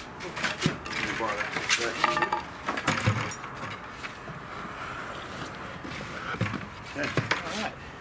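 A wooden board scrapes across wet plaster.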